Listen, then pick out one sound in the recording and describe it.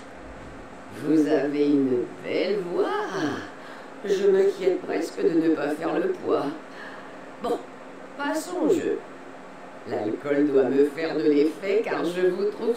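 A middle-aged man talks calmly into a microphone.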